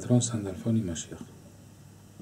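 A middle-aged man speaks briefly and calmly, close by.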